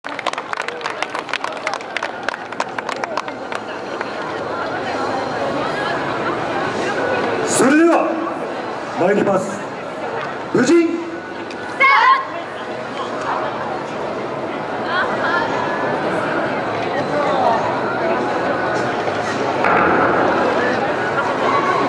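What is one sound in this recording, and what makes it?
A crowd of people murmurs in the background outdoors.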